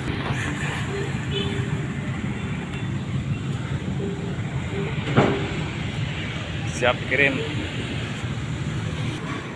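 Traffic rumbles steadily past on a nearby street, with motorbike engines.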